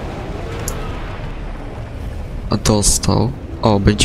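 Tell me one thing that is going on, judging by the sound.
An explosion booms and sends debris crashing down.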